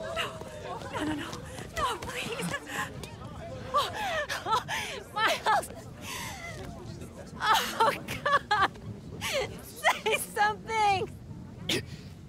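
A woman pleads in a frantic, tearful voice close by.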